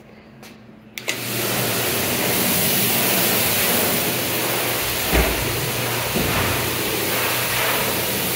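Water runs steadily from a tap into a sink.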